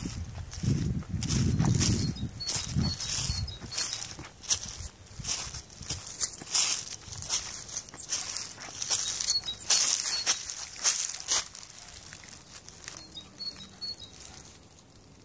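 A cat's paws patter softly over dry leaves and gravel.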